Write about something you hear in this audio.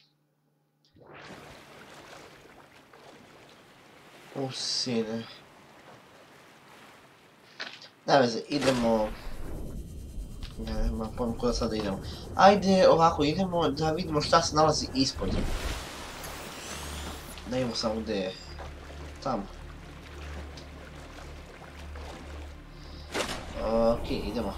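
Water splashes and sloshes against a small craft.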